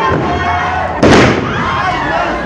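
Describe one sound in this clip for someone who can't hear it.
A wrestler's body slams onto the ring mat with a loud thud.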